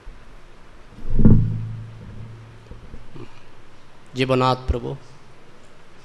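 An elderly man speaks slowly into a microphone over a loudspeaker.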